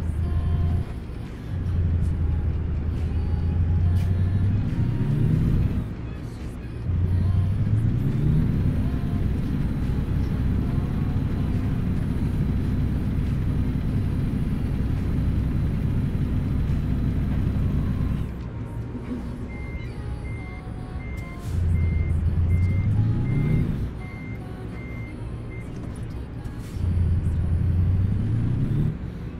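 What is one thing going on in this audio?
A heavy truck engine rumbles and revs up through its gears.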